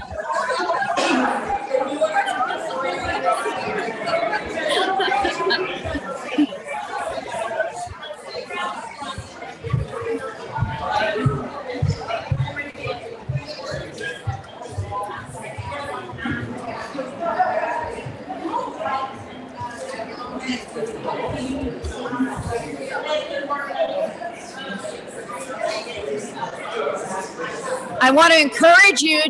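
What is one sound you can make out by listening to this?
A crowd of adults chats and murmurs in a large room.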